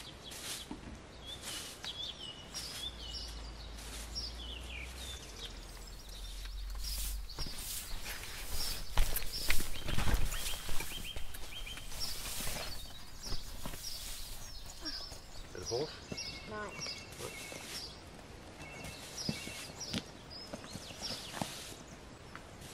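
A broom sweeps across the ground.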